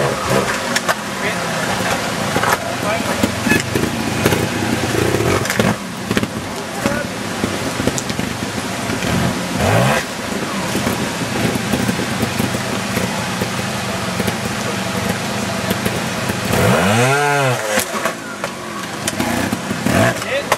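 A motorcycle engine idles and revs sharply in short bursts, close by.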